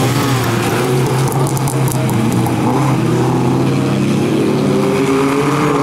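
Several car engines roar loudly, revving up and down.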